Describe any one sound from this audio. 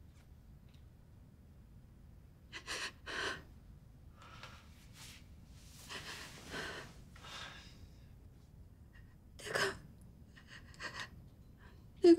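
A young woman speaks tearfully nearby.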